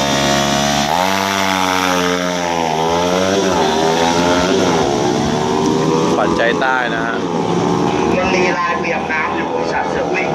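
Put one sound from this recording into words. A motorcycle roars off at full throttle and fades into the distance.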